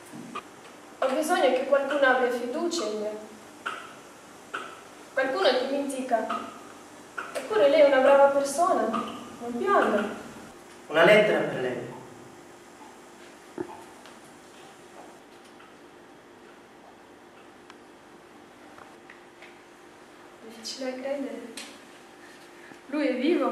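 A young woman speaks calmly and with feeling, close by.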